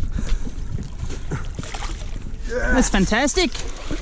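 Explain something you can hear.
Water splashes as a fish is netted.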